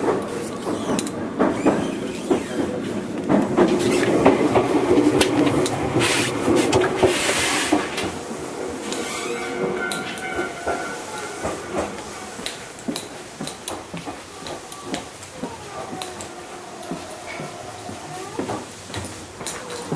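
A train's engine hums steadily while it stands at the platform.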